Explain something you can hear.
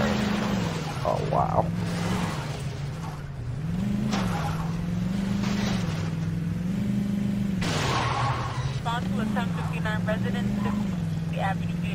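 A car engine drones steadily, rising and falling in pitch as it revs.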